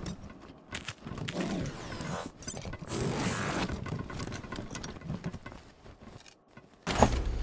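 Footsteps tread across a hard floor.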